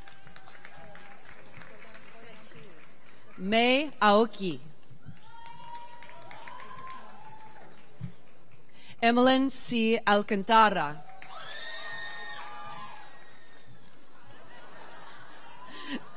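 People applaud.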